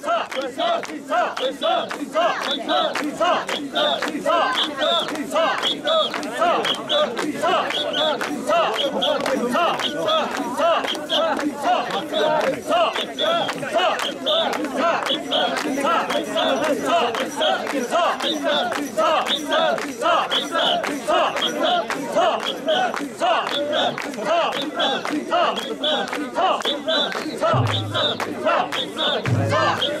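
A large crowd of men and women chants loudly in a rhythmic call outdoors, close by.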